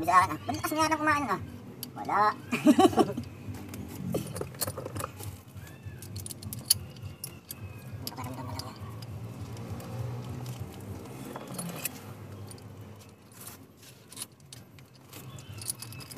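Fingers tap and click against metal engine parts.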